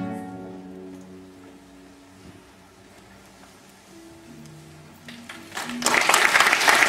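A guitar ensemble plucks soft, slow notes in a hall.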